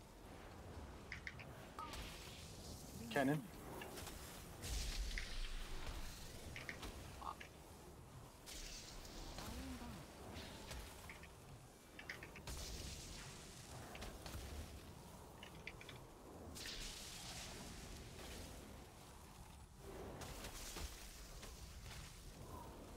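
Magic spells whoosh, crackle and zap in a busy video game battle.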